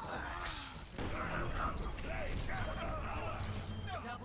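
An explosion booms and crackles.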